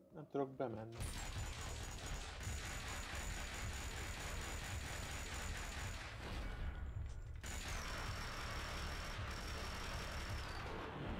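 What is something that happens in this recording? Two machine pistols fire long rapid bursts in an echoing room.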